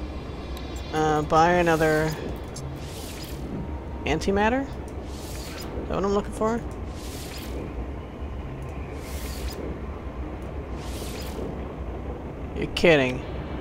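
Short electronic chimes sound as a menu scrolls.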